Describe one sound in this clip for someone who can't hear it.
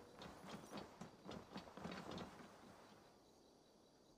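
Footsteps tread on stone steps.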